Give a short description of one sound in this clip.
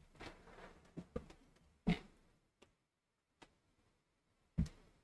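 A phone knocks and clicks against a desk.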